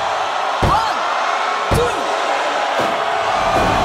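A referee's hand slaps the mat during a pin count.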